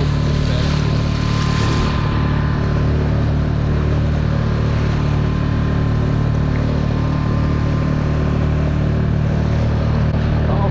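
Water splashes and rushes along the side of a moving boat.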